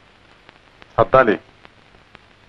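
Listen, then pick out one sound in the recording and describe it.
A man speaks a few words quietly and urgently.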